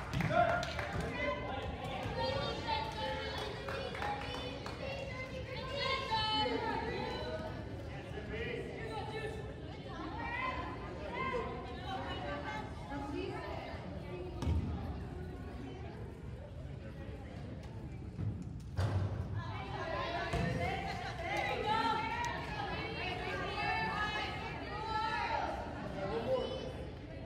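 Wheelchair wheels roll and squeak on a wooden court.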